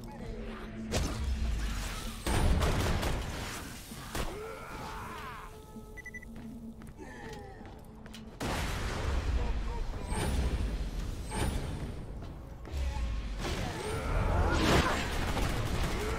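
Gunfire bursts rapidly from a weapon.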